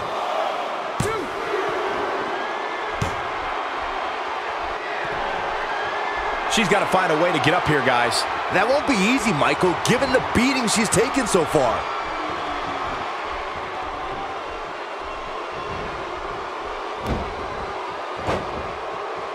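A body thuds onto a wrestling mat.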